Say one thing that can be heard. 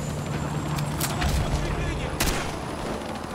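A rifle fires short bursts of shots close by.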